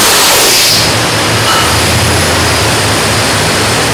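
A large engine roars loudly at full throttle.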